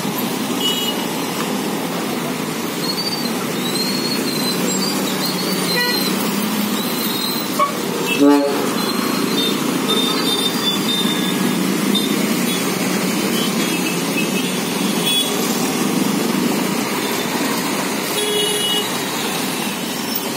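Busy traffic rumbles past on a wet road.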